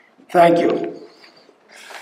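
An older man speaks through a microphone in a large hall.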